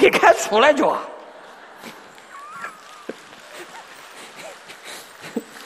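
A large crowd laughs softly.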